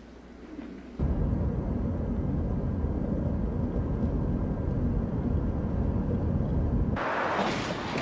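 A car's engine and road noise rumble steadily from inside the car.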